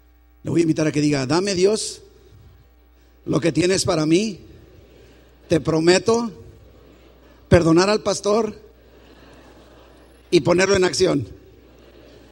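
A man preaches loudly in short phrases through a microphone, with pauses between them.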